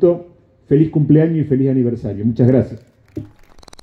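A man speaks firmly into a microphone over loudspeakers.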